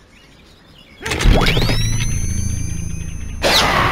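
A slingshot creaks as it is stretched back.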